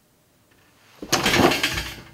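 A young girl bashes a toy drum kit.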